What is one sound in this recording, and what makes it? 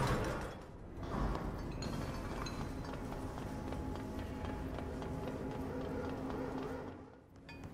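Footsteps run quickly on a metal walkway.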